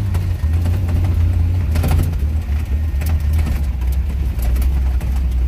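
Clumps of mud thud and splatter against a windshield.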